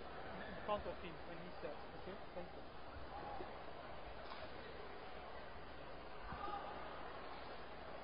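A crowd murmurs in a large indoor arena.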